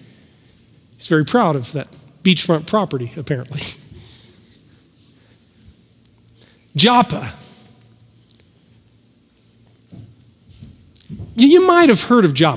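A man speaks with animation in an echoing hall, heard through a microphone.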